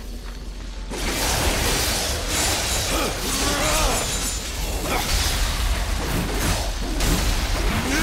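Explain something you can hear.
Heavy blows smash and crunch against creatures in a fierce melee.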